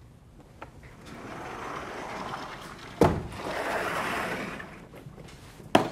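A sliding blackboard rumbles and thumps to a stop.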